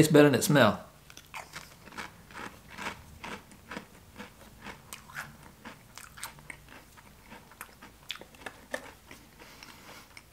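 A man crunches a crisp chip while chewing.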